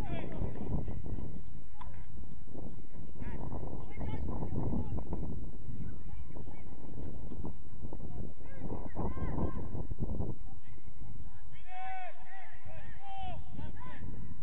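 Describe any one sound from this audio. Men shout to each other across an open field, heard from a distance.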